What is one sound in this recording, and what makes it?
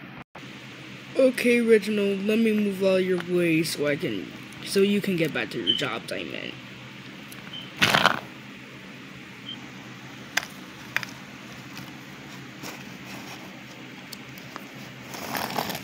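A small toy train rolls and scrapes across cardboard.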